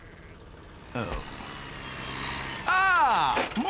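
A small tractor engine putters.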